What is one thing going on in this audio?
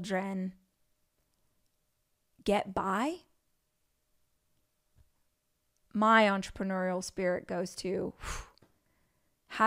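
A young woman speaks with animation into a close microphone, pausing between phrases.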